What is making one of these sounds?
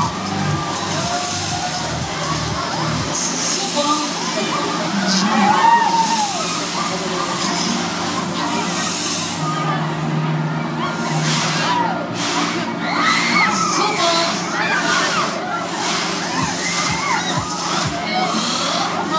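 A fairground ride whirls and whooshes past close by.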